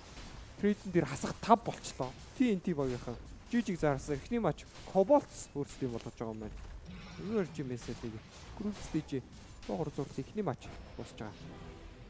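A man commentates with animation over a microphone.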